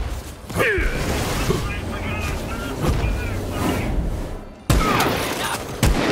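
Fiery explosions boom and crackle.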